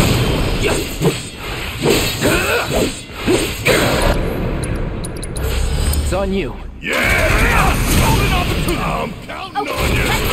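Blades strike a beast in quick metallic hits.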